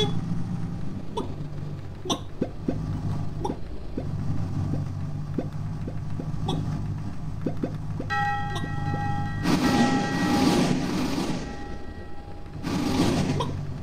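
A game character hops with short, soft clicks.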